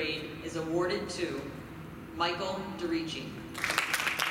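A woman speaks into a microphone in a large echoing hall.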